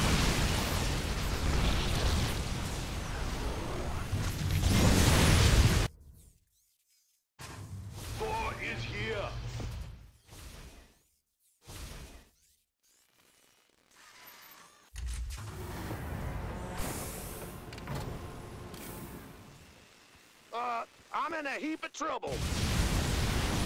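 Laser guns fire rapidly in a noisy battle.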